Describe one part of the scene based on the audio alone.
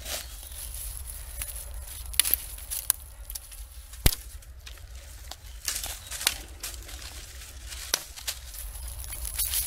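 Dry twigs crack and snap.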